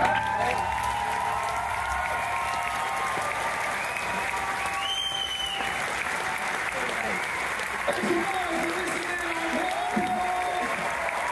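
A crowd cheers and applauds loudly in a large hall.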